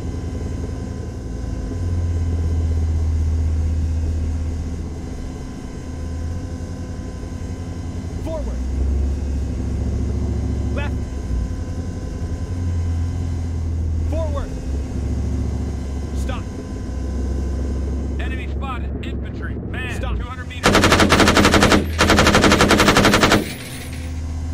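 A heavy engine rumbles low and steady.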